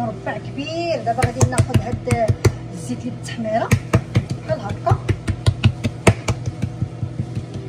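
Hands pat and slap soft dough on a countertop.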